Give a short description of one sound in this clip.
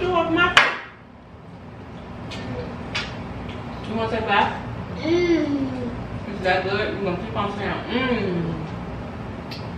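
A woman talks calmly to a small child close by.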